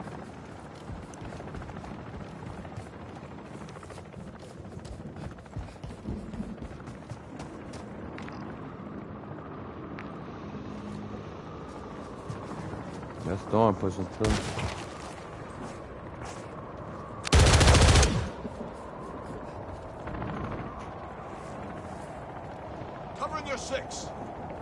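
Footsteps crunch on dirt while running.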